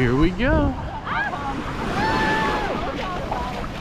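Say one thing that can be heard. Children and adults shout and call out in the water nearby.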